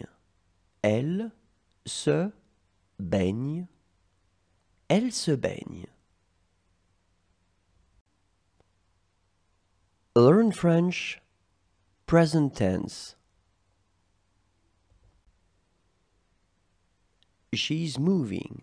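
A woman speaks clearly and slowly into a close microphone, reading out short phrases with pauses between them.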